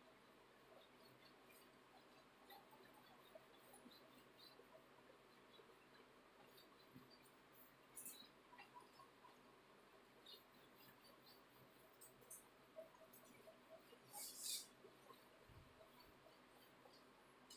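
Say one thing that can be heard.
A cloth wipes across a whiteboard with soft squeaks.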